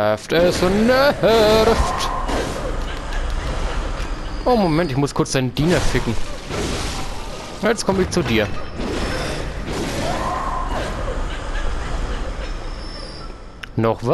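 A sword swishes and strikes in a fight.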